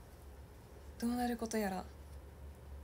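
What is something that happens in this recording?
A young woman speaks briefly and softly close by.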